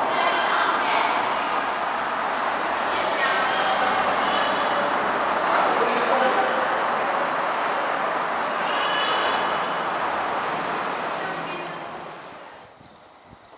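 A train rumbles along the tracks.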